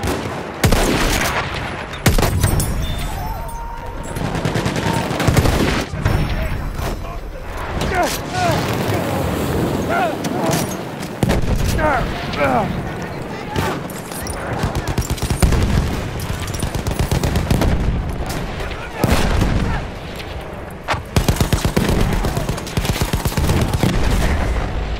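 Explosions rumble and boom nearby.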